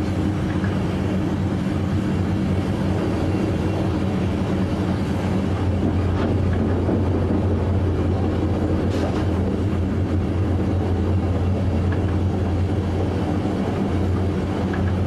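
A train rumbles steadily along the tracks with a low engine hum.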